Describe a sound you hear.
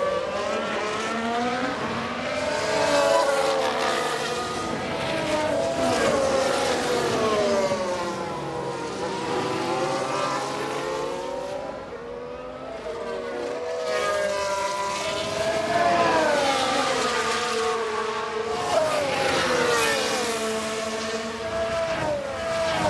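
Racing car engines whine loudly, rising and falling in pitch as the cars pass.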